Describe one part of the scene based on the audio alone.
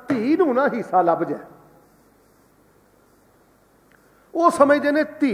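A man speaks with animation into a microphone, pausing briefly.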